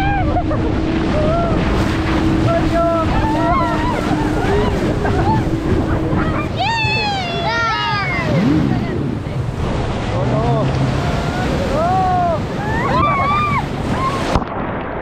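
Young people shout and scream with excitement outdoors.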